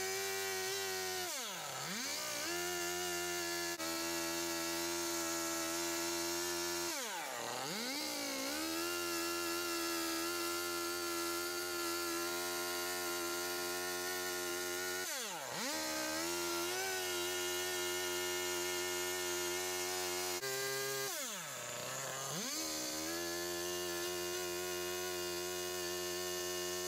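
A chainsaw engine runs loudly and steadily, its pitch dropping and rising again several times as it cuts into wood.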